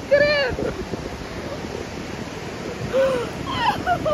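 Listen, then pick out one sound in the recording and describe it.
A man laughs up close.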